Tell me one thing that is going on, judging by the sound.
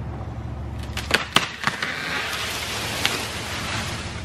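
A tree cracks and crashes down.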